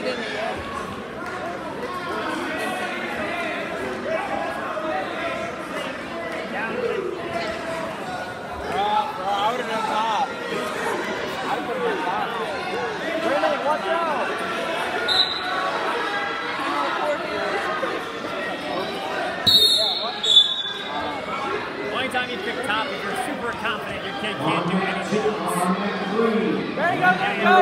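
A crowd of spectators chatters throughout a large echoing gym.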